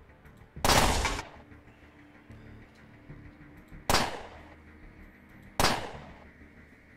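Sharp game gunshots ring out a few times.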